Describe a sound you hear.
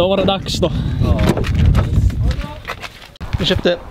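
A vehicle door unlatches and slides open.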